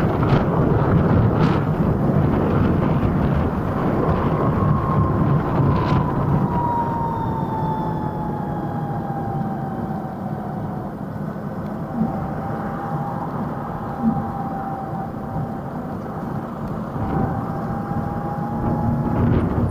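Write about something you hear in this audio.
A scooter motor hums steadily with a gliding whine.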